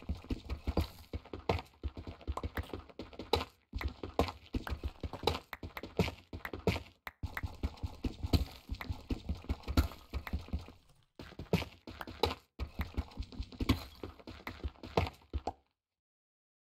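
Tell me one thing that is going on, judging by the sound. A pickaxe chips at stone in quick, repeated knocks.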